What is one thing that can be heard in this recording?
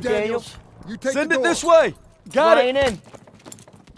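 A man calls out orders nearby.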